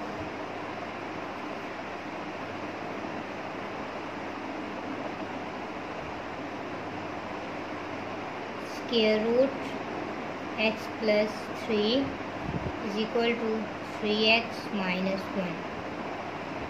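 A pen scratches softly on paper as it writes.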